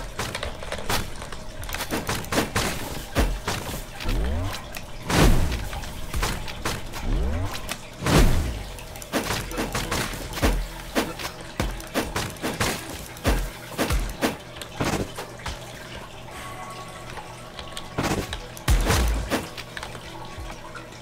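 Sharp magical blasts and slashing hits crack again and again.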